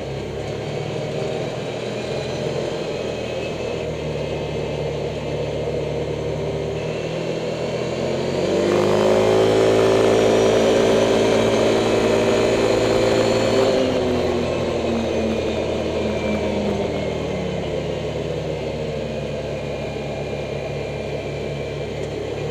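Tyres crunch on a gravel road.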